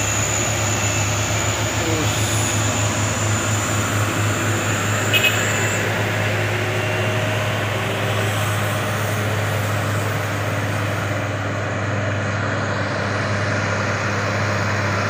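Tyres roll on wet asphalt.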